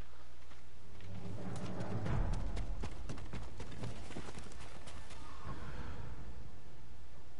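A horse gallops over dry ground, hooves thudding.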